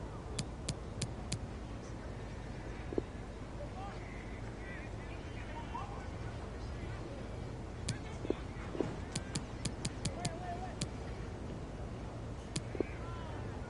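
Short, sharp electronic ticks sound in quick bursts.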